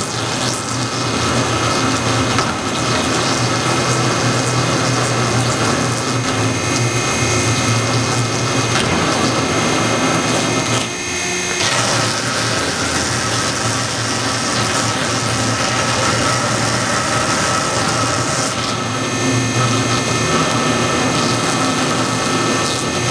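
A machine motor hums steadily.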